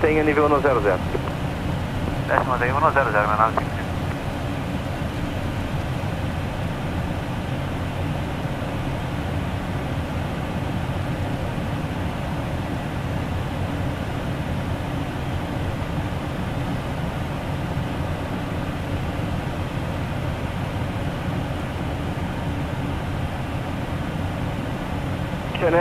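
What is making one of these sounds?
Jet engines drone steadily inside a cockpit.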